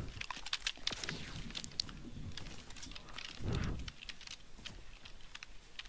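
Footsteps patter across grass.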